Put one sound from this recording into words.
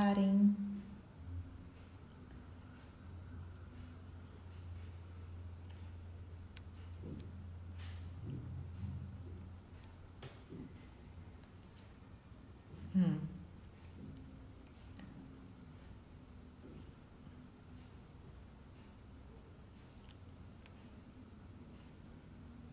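A middle-aged woman speaks softly and close by.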